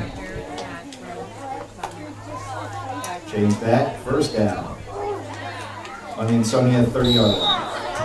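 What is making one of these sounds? A crowd of spectators chatters in the background.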